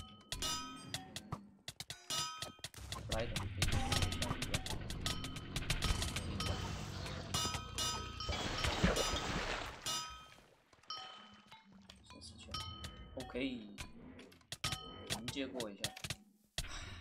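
Sword blows land on monsters in quick, sharp hits.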